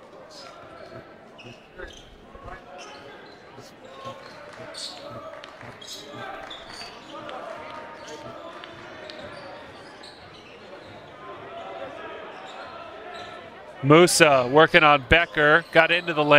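A crowd murmurs in an indoor arena.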